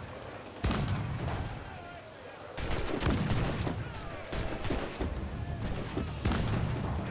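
Cannons boom and explosions crash again and again.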